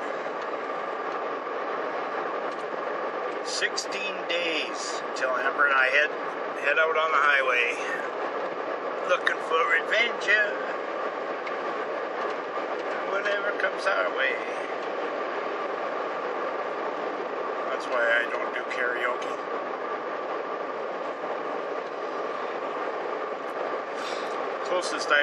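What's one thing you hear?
A car engine hums steadily inside a cabin.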